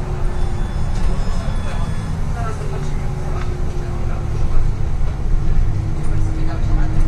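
A bus rattles and creaks as it rides over the road.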